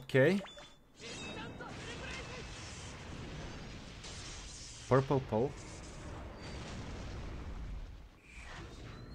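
A magical blast roars and crackles.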